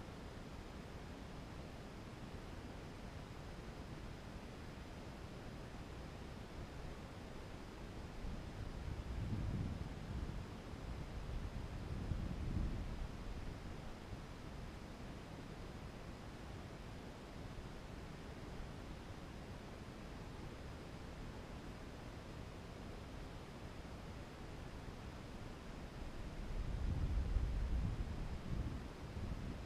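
Wind rumbles steadily, with low gusts now and then.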